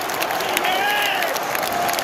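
Fans clap their hands close by.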